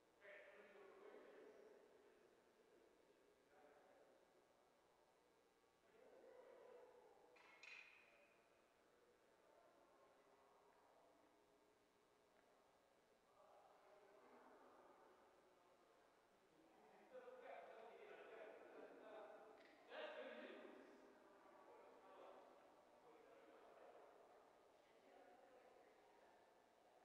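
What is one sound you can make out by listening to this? A man speaks at a distance in a large, echoing hall.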